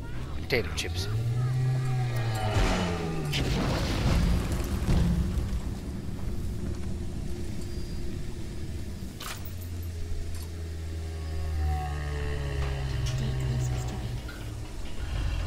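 A huge creature groans in a deep, booming voice.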